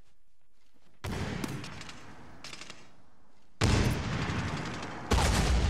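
Loud bursts of gunfire ring out close by.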